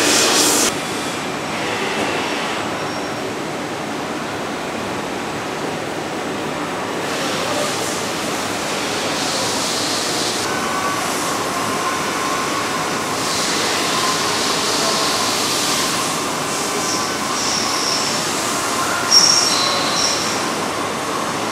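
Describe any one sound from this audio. A robot arm whirs as it moves.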